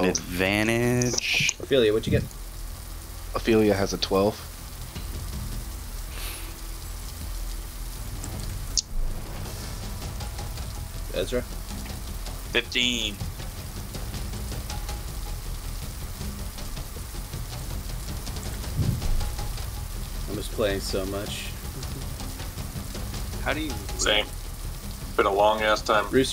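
A man speaks through a microphone in short bursts, with pauses between.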